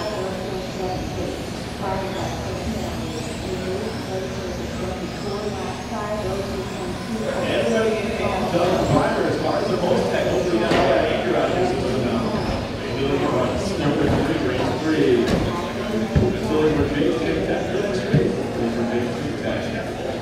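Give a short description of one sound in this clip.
Small electric racing cars whine around a track in a large echoing hall.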